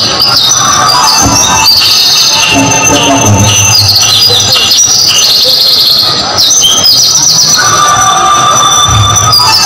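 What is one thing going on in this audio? A large outdoor crowd of children and adults chatters and calls out.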